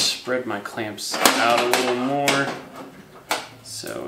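A metal clamp clicks and rattles as it is handled.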